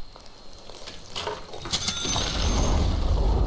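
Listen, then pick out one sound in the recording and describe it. Magic spells crackle and blast in a fantasy battle.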